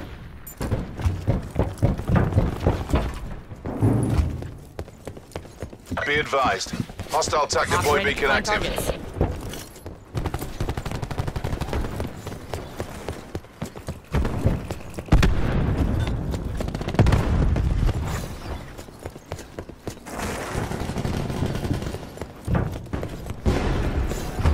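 Footsteps run quickly over hard floors.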